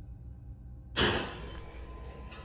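A wooden door swings open with a heavy thud.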